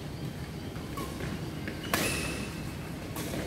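Shuttlecocks are struck with sharp racket pops in a large echoing hall.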